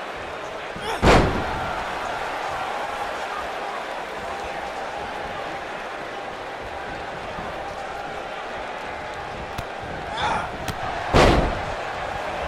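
A wrestler slams heavily onto the ring mat with a loud thud.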